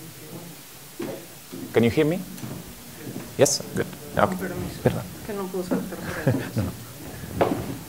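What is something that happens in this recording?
A woman speaks in a large room, heard from a distance.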